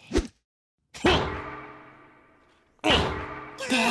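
A hammer strikes a glass jar with a loud knock.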